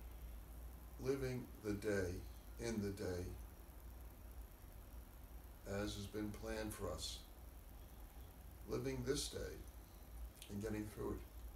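An elderly man speaks slowly and calmly, close by, with long pauses.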